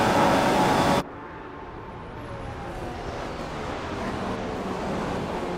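Racing car engines whine in the distance as cars pass.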